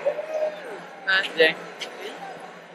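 A young woman speaks excitedly close by.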